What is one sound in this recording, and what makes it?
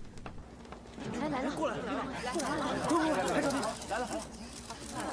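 A crowd of men and women talk and call out at once.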